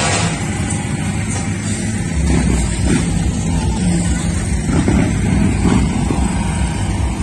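Motorcycle engines rumble and idle nearby.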